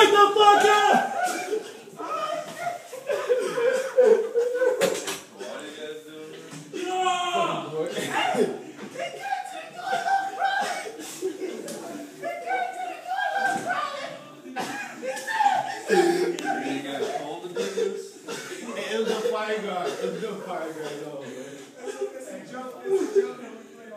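Young men shout and laugh loudly nearby in an echoing hallway.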